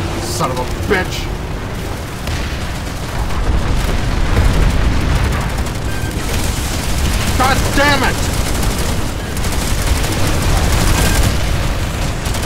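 Rapid gunfire and explosions rumble loudly.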